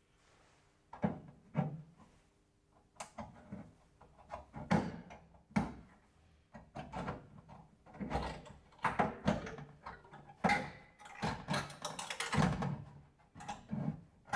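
Short sharp taps of a tool on metal.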